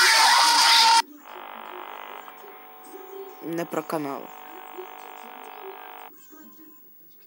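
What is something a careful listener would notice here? Electronic static hisses steadily.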